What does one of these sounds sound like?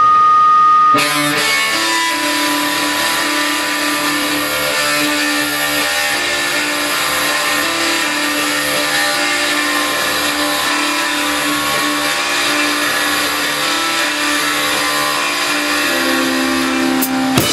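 An electric guitar plays chords.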